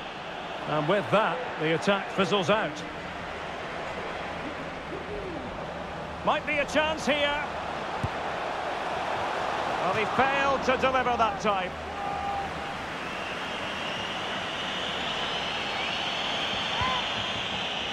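A large crowd roars and murmurs steadily in a big open stadium.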